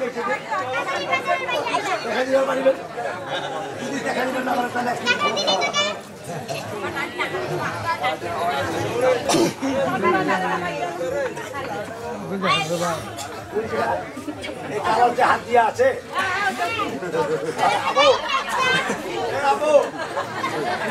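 A large crowd chatters and calls out loudly all around.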